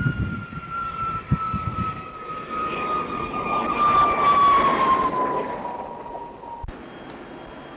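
A jet engine roars with a high whine that drops in pitch as the plane passes close by.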